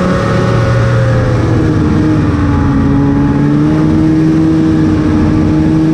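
A snowmobile engine drones steadily, its pitch dipping slightly and rising again.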